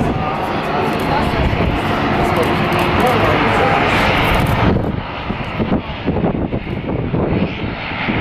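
A propeller plane's engines drone loudly as it taxis past.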